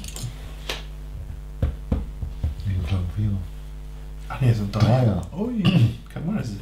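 Small plastic bricks click and rattle as hands sort through them.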